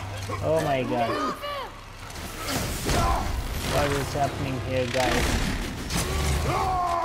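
Heavy blows land with loud crashing thuds.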